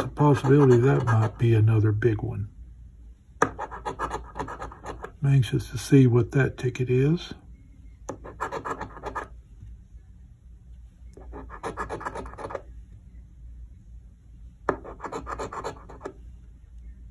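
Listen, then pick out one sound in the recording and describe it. A coin scrapes across a scratch card in short, rasping bursts.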